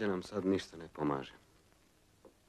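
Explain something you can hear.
A man speaks quietly.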